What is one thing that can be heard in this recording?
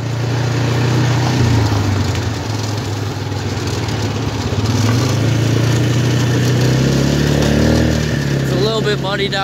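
An engine drones steadily as a small vehicle drives over rough ground.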